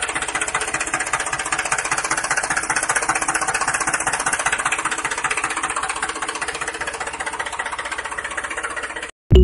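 A small electric toy motor whirs steadily.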